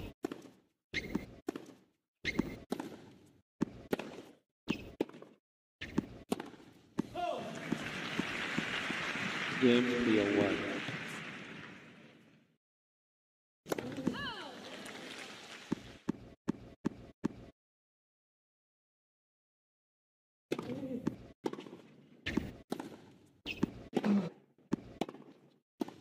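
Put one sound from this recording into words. A tennis ball is struck with sharp, hollow pops.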